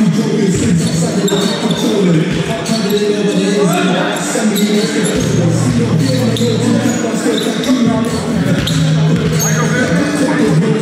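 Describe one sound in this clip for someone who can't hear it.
Many people talk and call out at once in a large echoing hall.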